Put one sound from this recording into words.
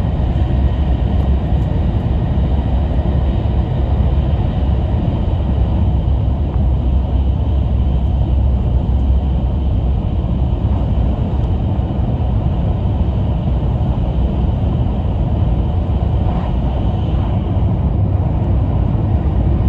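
A train rumbles steadily at speed, heard from inside a carriage.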